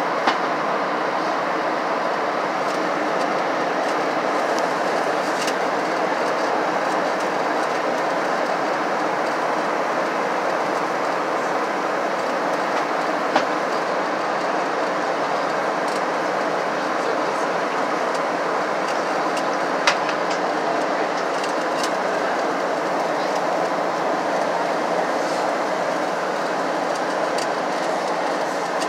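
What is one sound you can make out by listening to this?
A jet engine roars steadily inside an airliner cabin in flight.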